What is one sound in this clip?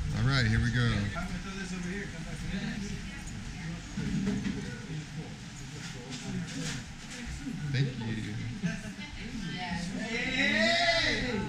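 Several adults talk and chatter nearby in a room.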